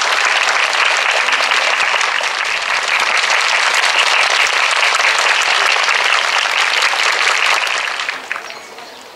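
A crowd claps and cheers loudly nearby.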